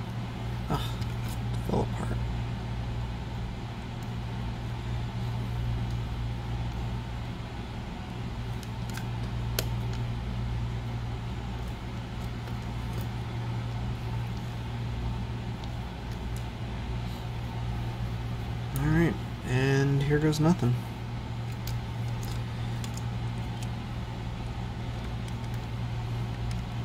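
Small plastic parts click and tap softly as they are handled.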